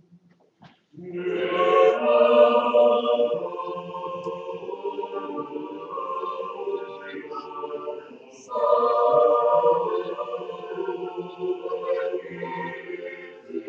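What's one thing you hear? A choir of mixed voices sings in a large echoing hall.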